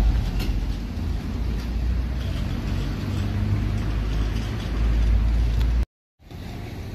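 A bus engine rumbles close by.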